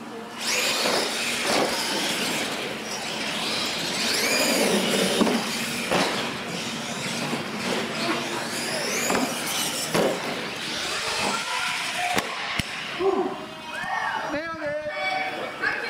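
Small electric motors whine as toy trucks race across a hard floor.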